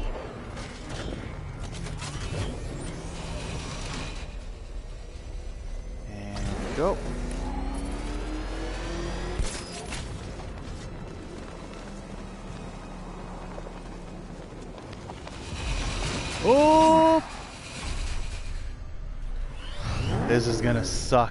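A car engine hums and roars as a vehicle drives.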